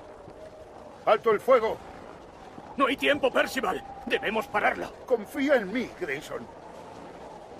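A man shouts tensely at close range.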